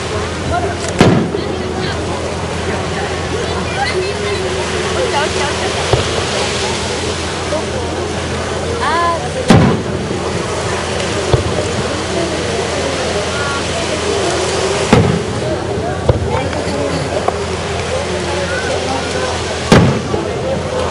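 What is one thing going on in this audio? Fireworks burst with loud booms that echo in the distance.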